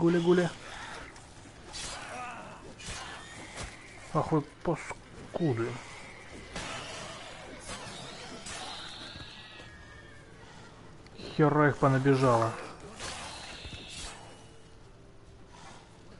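Blades slash and strike in a fight.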